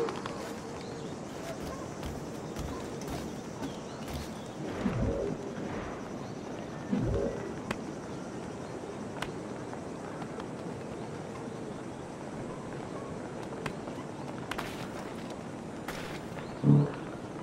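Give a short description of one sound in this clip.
Footsteps pad softly over grass and stone.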